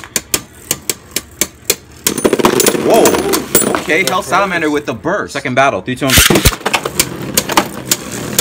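Spinning tops clash and clatter sharply in a plastic arena.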